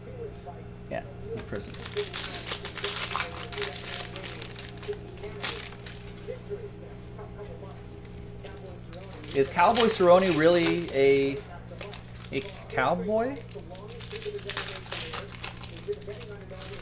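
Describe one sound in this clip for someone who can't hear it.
A plastic wrapper crinkles and tears as hands open it.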